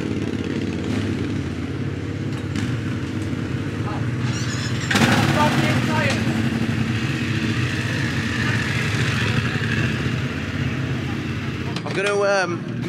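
A motorcycle engine idles and revs loudly.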